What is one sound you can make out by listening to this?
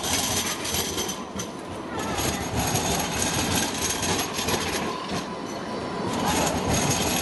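A tram rumbles past close by on its rails.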